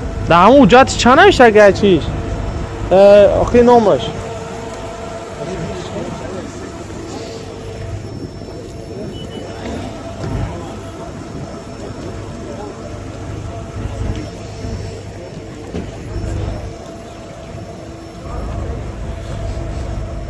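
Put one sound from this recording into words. A car engine idles steadily with a low rumble.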